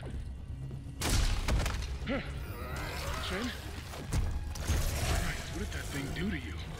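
A creature screeches and snarls.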